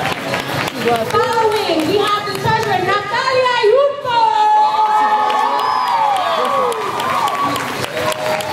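A young woman sings through a microphone and loudspeakers in a large echoing hall.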